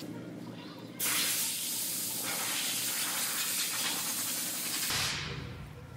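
Masking tape peels off a surface with a long tearing hiss.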